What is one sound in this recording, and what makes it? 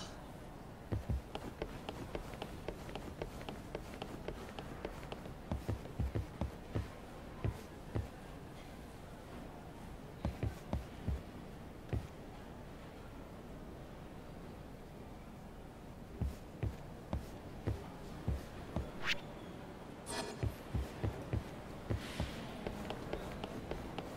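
Footsteps thud quickly on a hard floor.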